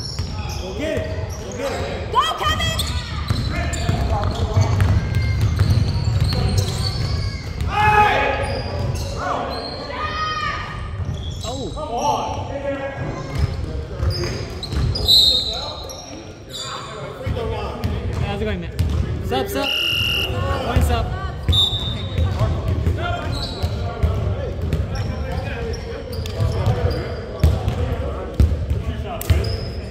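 Men shout and call to each other across an echoing gym.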